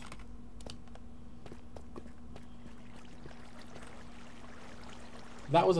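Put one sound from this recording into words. Footsteps tap on stone at a steady walking pace.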